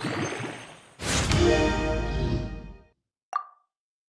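A bright, rising chime swells and rings out.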